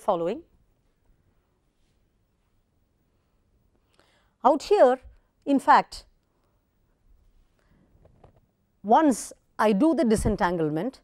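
A woman lectures calmly into a close microphone.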